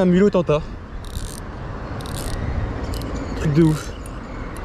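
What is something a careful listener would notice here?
A fishing reel whirs and clicks as its handle is turned.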